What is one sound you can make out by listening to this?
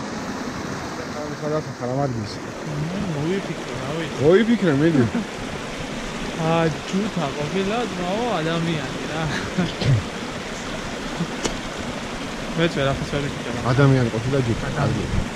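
A young man speaks cheerfully close by.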